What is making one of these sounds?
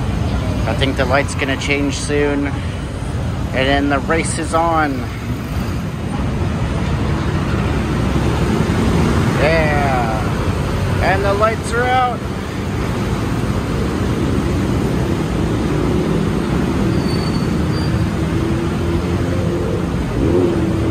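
Dense city traffic rumbles steadily, with many motorbike engines idling and pulling away.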